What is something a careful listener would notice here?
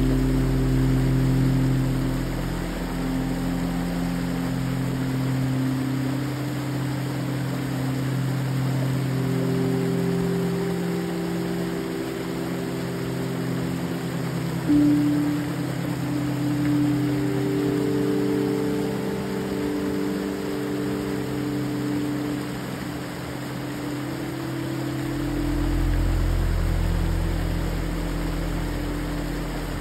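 A small creek waterfall splashes over rock ledges into a foaming pool.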